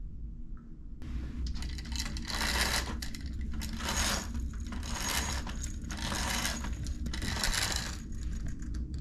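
A roller blind rattles as it is raised by its cord.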